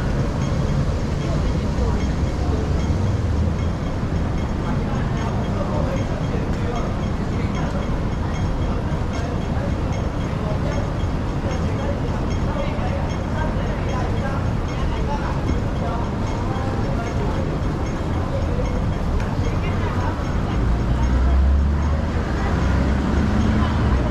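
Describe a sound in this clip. Steady city traffic rumbles outdoors.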